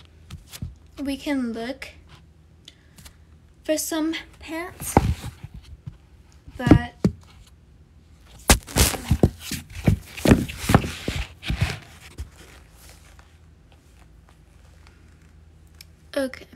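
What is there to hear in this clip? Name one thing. A young woman speaks casually close to a phone microphone.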